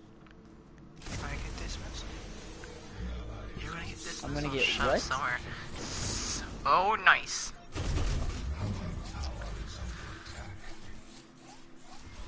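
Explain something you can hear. Energy blasts whoosh and crackle in a fight.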